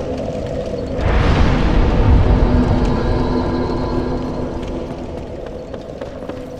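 A magical burst roars and swells, then slowly fades.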